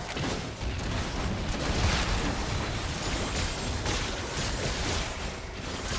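Magic spells whoosh and crackle during a fight.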